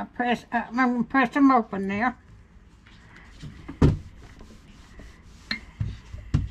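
Fabric pieces rustle softly as they are handled.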